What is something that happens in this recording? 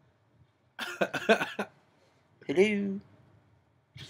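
A young man talks loudly and animatedly, close to a microphone.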